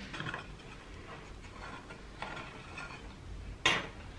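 A knife scrapes around the edge of a cake tin.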